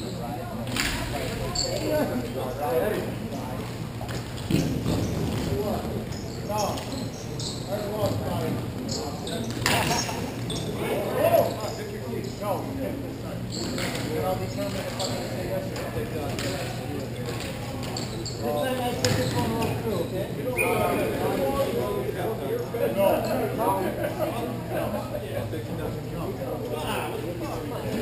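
Sticks clack against a ball and the floor.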